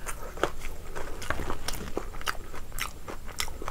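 Fingers squish and mix soft, wet food.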